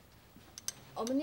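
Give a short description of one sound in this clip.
A woman starts to speak nearby.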